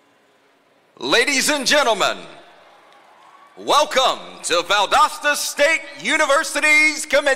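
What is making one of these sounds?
A man speaks through a loudspeaker, echoing outdoors.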